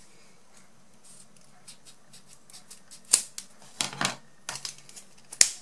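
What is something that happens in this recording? Scissors snip through paper with sharp little clicks.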